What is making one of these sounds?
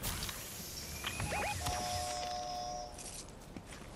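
A short game chime sounds as an item is picked up.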